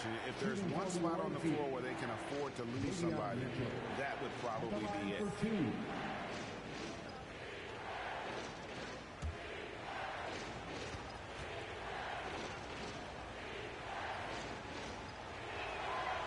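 A large crowd murmurs steadily in a big echoing arena.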